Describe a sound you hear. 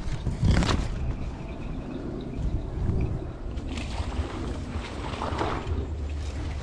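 Wind blows across open fields, rustling the grass.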